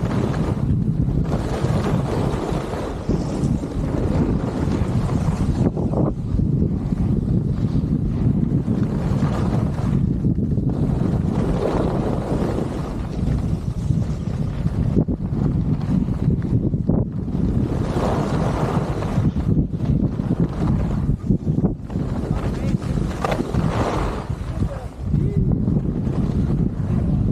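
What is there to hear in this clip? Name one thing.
Wind rushes loudly past, rumbling.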